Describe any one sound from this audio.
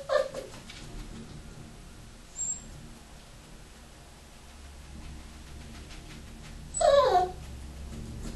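A small dog yelps and whines close by.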